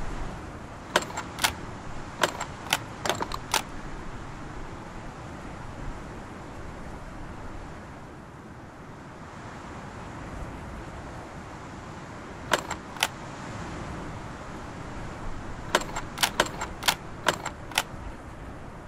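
Game pieces click sharply into place.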